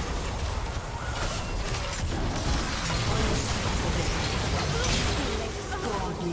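Magic blasts and clashing hits crackle during a fast battle.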